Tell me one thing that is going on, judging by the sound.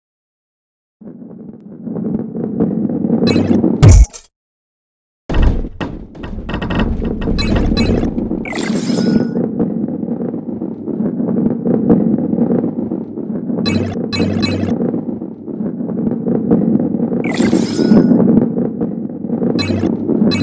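A ball rolls along a wooden track with a low rumble.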